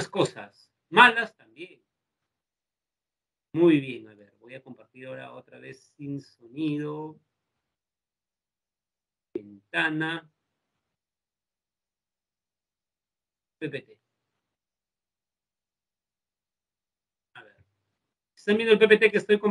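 A young man speaks calmly in short bursts over an online call.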